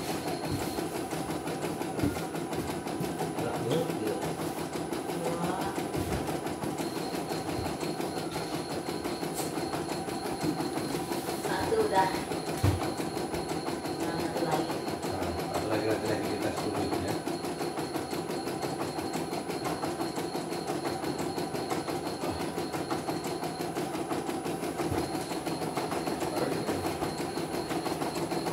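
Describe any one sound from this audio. A sewing machine stitches with a fast, steady rattling hum.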